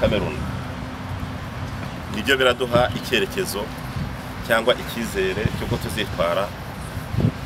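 A man speaks loudly to a group outdoors.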